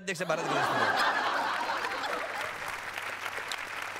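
A middle-aged woman laughs loudly close to a microphone.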